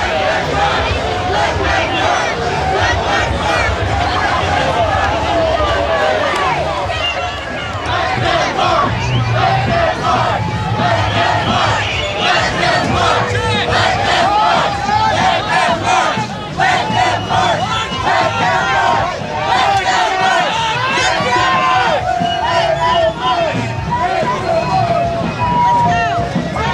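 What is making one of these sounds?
A crowd of protesters chants and shouts loudly outdoors.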